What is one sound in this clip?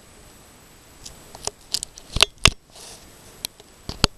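A boot scuffs and taps on rock close by.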